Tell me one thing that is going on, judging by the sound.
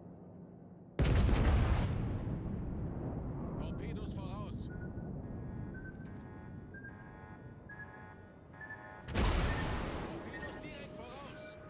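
Heavy ship guns fire with a deep, thunderous boom that rumbles away.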